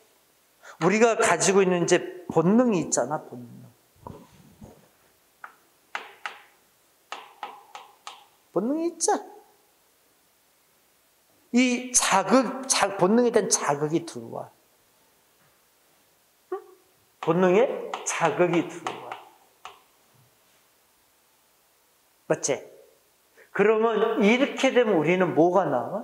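A middle-aged man lectures with animation through a microphone.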